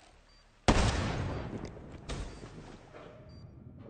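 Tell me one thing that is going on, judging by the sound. A rifle shot booms and rolls away in a long echo.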